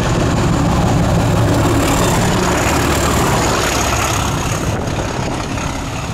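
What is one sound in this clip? Train wheels clatter and rumble on the rails as the train passes close by.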